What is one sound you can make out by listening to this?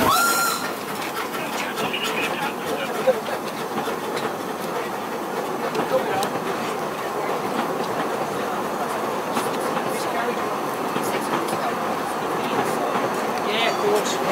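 Narrow-gauge passenger carriages rumble and clatter past on the rails.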